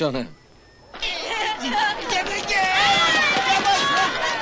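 Children shout and laugh excitedly.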